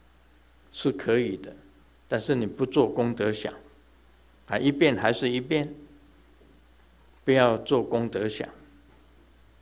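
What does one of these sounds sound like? An elderly man reads aloud slowly and calmly into a microphone, pausing between phrases.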